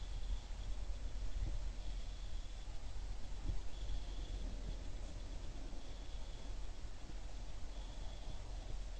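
Small birds chirp softly on and off.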